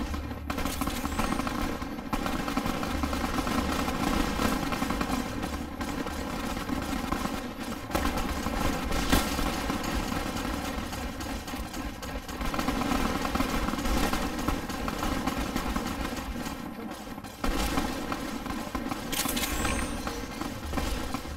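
Footsteps shuffle through dry grass and dirt.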